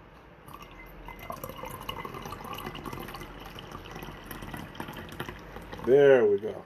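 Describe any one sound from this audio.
Liquid pours in a thin stream into a bowl.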